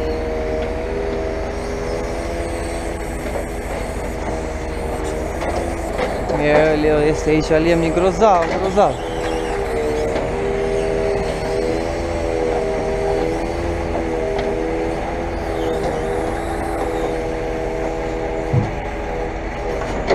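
A truck-mounted crane's engine hums steadily with a droning whine.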